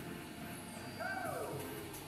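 A short chime sounds as a game round starts.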